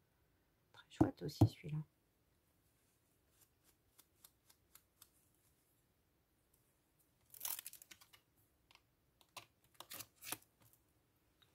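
A plastic sheet crinkles as stamps are peeled off and put back.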